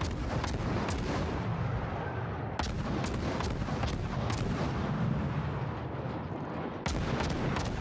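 Shells explode with heavy rumbling booms.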